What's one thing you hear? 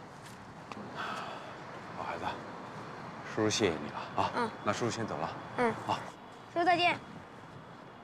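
A middle-aged man speaks warmly and calmly.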